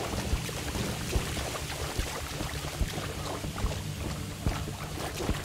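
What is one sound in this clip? Water splashes with heavy steps wading through it.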